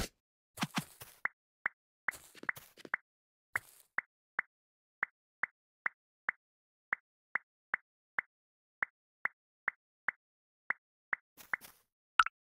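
Footsteps tap at a steady pace on a hard floor.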